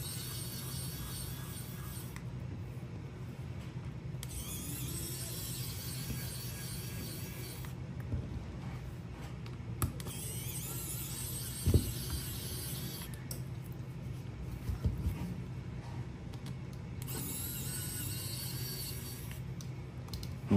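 An electric screwdriver whirs in short bursts.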